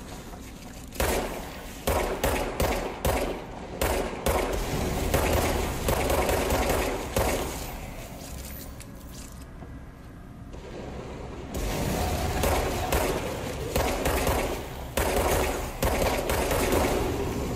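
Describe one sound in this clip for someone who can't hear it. Gunshots fire in quick bursts, echoing in a large metal tunnel.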